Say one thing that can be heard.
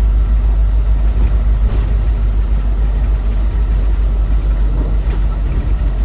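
A heavy vehicle's engine rumbles low and steady while driving.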